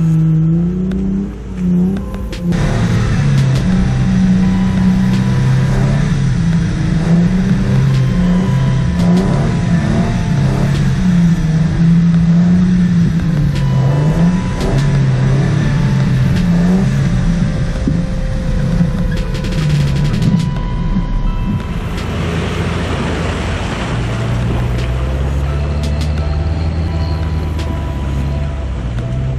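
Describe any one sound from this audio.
A vehicle engine growls and revs as it drives.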